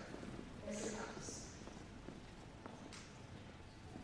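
A young woman speaks calmly through a microphone in a large echoing hall.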